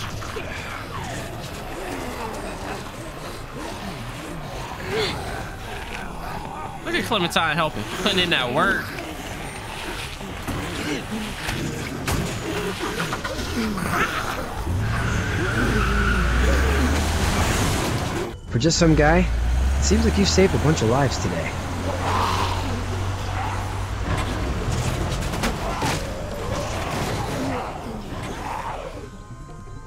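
A young man talks and reacts with animation close to a microphone.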